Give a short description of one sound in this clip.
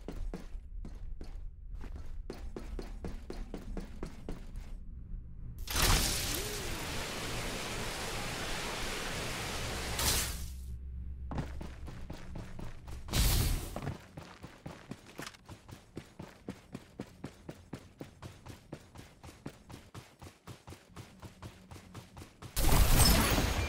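Footsteps patter quickly and evenly on hard ground.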